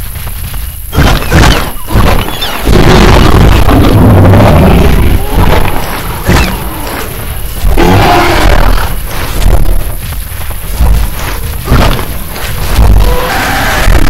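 Heavy bites and thuds land in a fight between dinosaurs.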